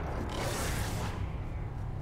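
A pickaxe swings and strikes with a thud.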